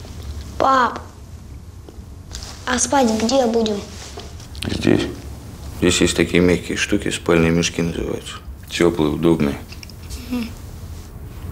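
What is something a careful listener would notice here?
A young man speaks quietly and earnestly nearby.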